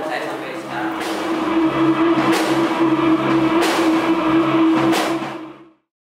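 Cymbals crash.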